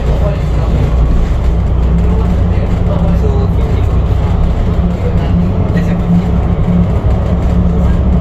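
A vehicle's engine hums steadily while driving along a highway.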